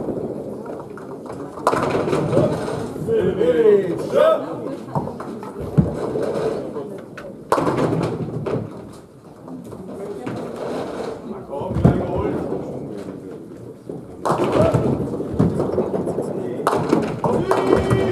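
A bowling ball rolls heavily down a lane in an echoing hall.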